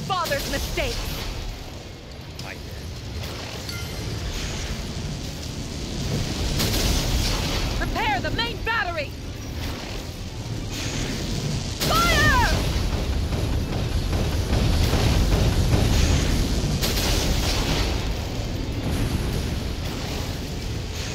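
Explosions burst and crackle close by.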